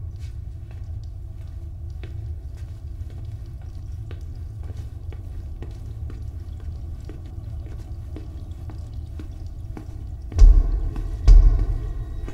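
Footsteps echo along a long hallway.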